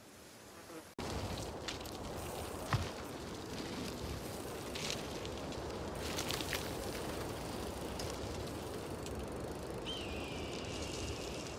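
Bicycle tyres roll and crunch over a rough gravel trail.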